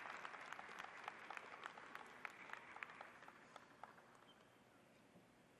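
A crowd applauds in a large echoing arena and the applause fades.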